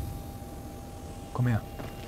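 A mining laser buzzes.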